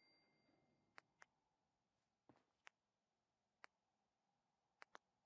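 Short electronic menu clicks tick now and then.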